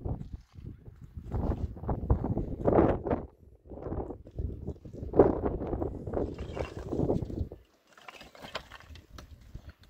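Broken concrete scrapes and knocks among rubble.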